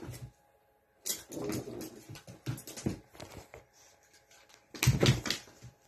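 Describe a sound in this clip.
A small terrier shakes and thrashes a plush toy on a carpet.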